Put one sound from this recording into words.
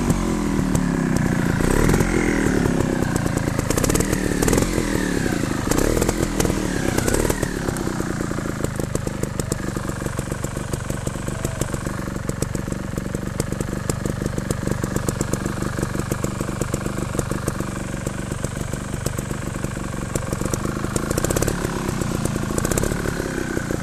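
A motorbike engine revs up and down close by.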